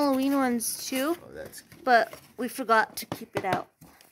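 A hand taps and crinkles a cardboard package.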